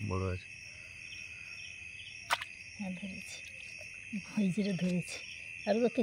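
Hands rustle through wet grass and mud.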